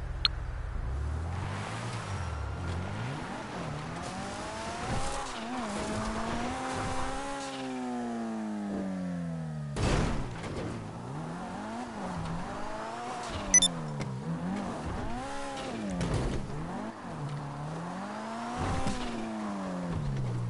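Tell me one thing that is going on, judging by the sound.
A car engine revs up and down repeatedly.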